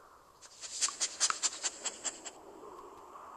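A cat scratches at a scratching post.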